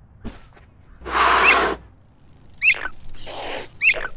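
Animals snarl and squeal in a scuffle.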